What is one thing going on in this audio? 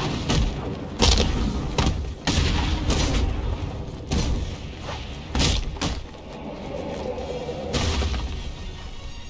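Punches and kicks land in quick, heavy thuds.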